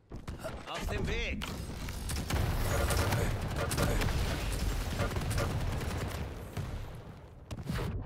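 Rapid gunfire blasts loudly in a video game.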